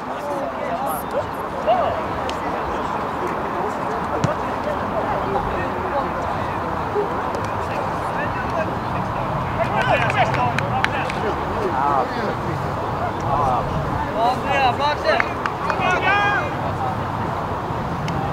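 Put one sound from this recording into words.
Young women shout and cheer outdoors, some way off.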